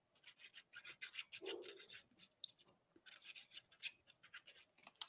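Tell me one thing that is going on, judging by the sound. A glue pen dabs and squelches softly on paper.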